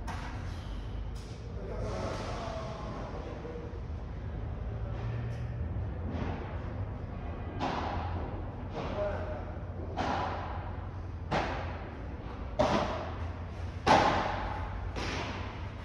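Padel rackets hit a ball back and forth in an echoing indoor court.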